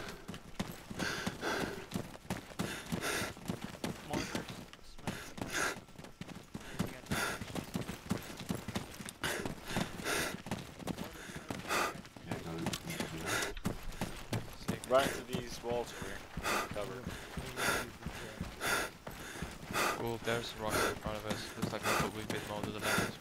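Footsteps run quickly through dry grass and brush.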